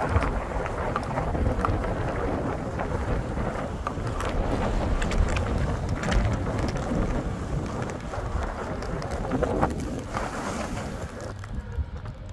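Skis scrape and hiss over snow close by.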